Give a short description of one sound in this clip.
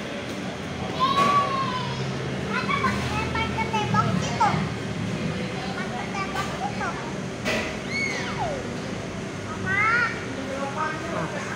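A young girl chatters and squeals.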